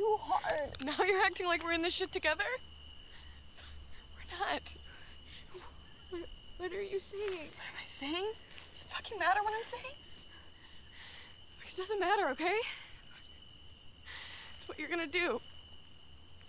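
A young woman speaks with sharp emotion, close by.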